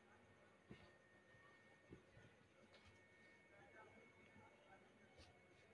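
Cloth rustles softly as hands smooth and move it.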